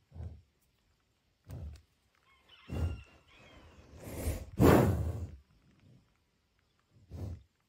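A bison breathes and snorts heavily close by.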